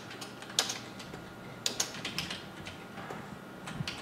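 Keys clatter on a computer keyboard.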